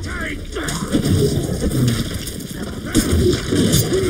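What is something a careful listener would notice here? A sword swishes through the air and strikes.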